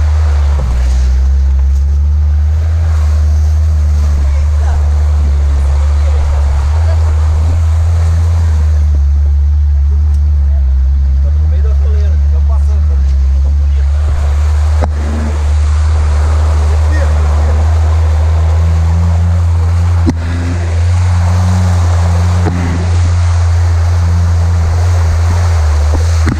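A vehicle engine rumbles loudly and steadily close by.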